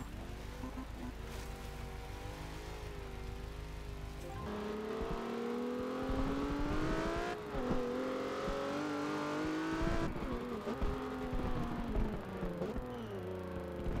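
Tyres screech as a car slides sideways.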